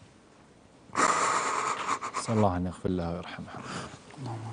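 A middle-aged man laughs helplessly behind his hands, close to a microphone.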